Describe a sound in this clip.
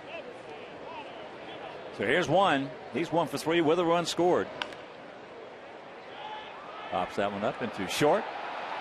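A crowd murmurs in a large open ballpark.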